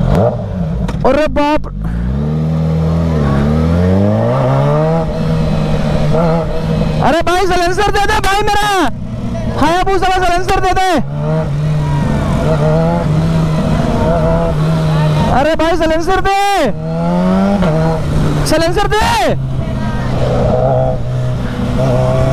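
A motorcycle engine hums steadily up close, rising and falling as the throttle changes.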